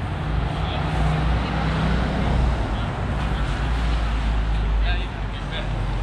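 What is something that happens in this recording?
Wind buffets outdoors, strongest at first.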